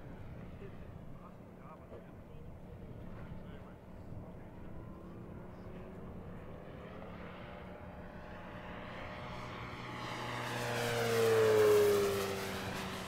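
A propeller plane drones overhead, growing louder as it roars past close by and its pitch drops.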